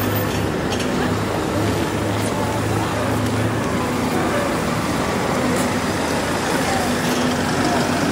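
City traffic hums steadily in the distance.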